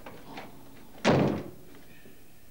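A door bumps shut.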